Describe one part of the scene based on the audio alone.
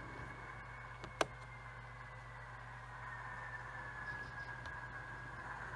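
Small wheels click softly over the rail joints.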